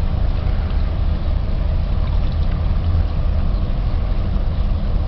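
Small waves lap on the water.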